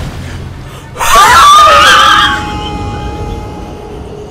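A loud, eerie tone swells up and slowly fades as a character dies.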